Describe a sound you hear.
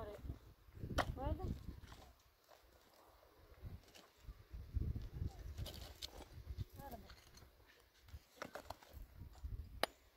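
Concrete blocks clatter and knock as a boy moves them.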